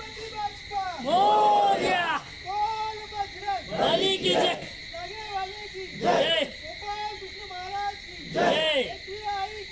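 A crowd of young men chant together in loud bursts, outdoors.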